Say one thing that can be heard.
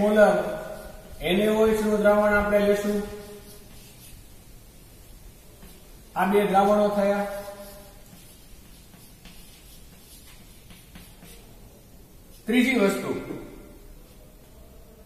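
A middle-aged man speaks slowly in drawn-out phrases.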